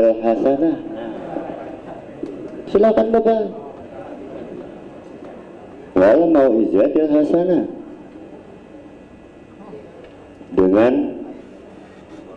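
A man chants melodically into a microphone in bursts, with echo.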